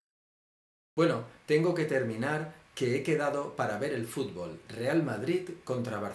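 A man talks to the microphone up close, calmly and with emphasis.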